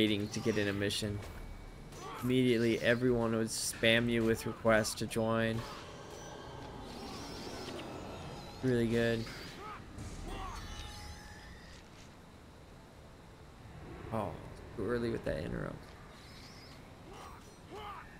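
Blows and magic effects clash in a fight.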